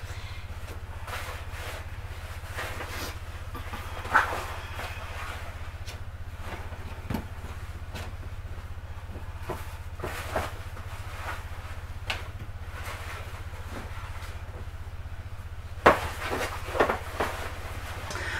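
Hard plastic parts knock and clatter close by as they are handled.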